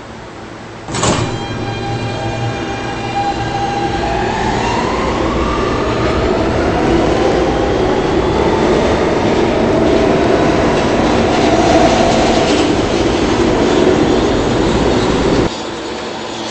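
A train's electric motor whines and rises in pitch as it speeds up.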